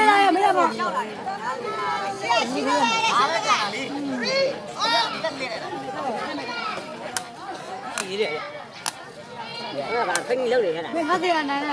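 A crowd of men and boys chatter and call out loudly outdoors.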